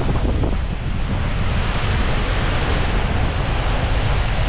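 A bus swishes past on a wet road.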